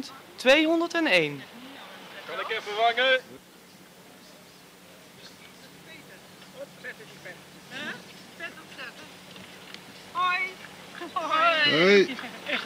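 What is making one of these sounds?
Bicycles roll along a paved path.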